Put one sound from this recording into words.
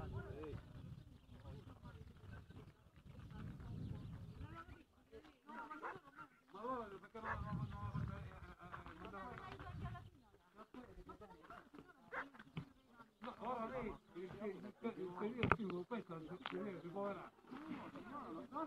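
Men talk in the distance outdoors.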